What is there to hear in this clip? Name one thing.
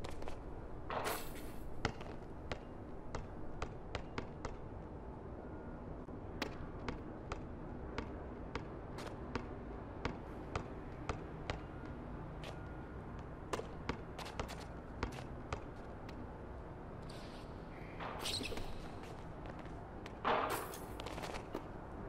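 Sneakers squeak sharply on the court now and then.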